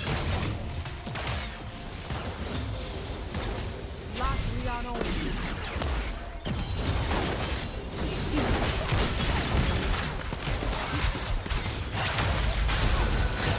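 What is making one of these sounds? Game characters' attacks clash with sharp impacts.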